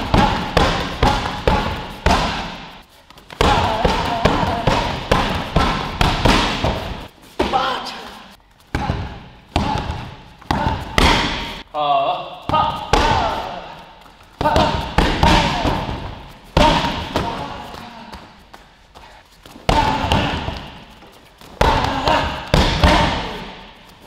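Thuds echo around a large, hard-walled hall.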